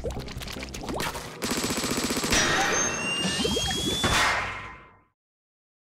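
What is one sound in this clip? Paint splatters and whooshes in loud bursts.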